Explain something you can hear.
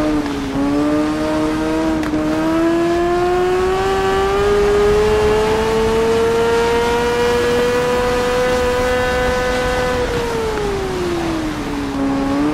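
A racing motorcycle engine screams at high revs, climbing steadily and then dropping as the rider slows.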